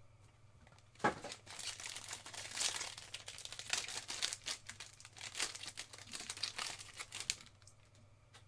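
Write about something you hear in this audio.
Foil wrapping crinkles and tears as a card pack is opened.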